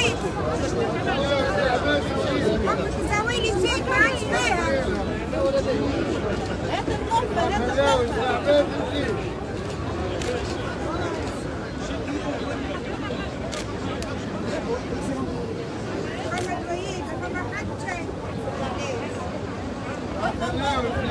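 A large outdoor crowd of men and women chants and shouts loudly together.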